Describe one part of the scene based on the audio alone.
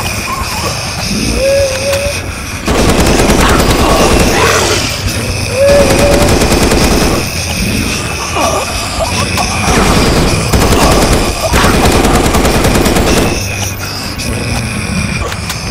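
Monsters growl and snarl.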